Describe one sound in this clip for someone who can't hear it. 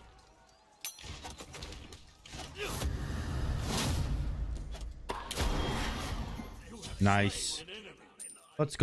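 Sword strikes and magic blasts clash in a game's battle.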